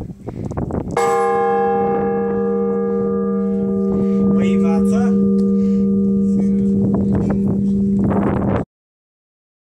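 A large metal bell is struck once and rings on with a deep hum.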